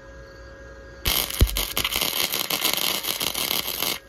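An electric welding arc crackles and sputters loudly.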